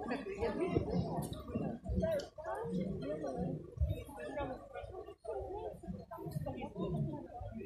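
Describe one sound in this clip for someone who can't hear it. Several women and men chatter nearby outdoors.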